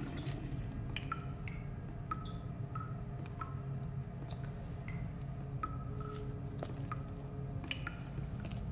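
Water drips steadily into a half-filled plastic bottle.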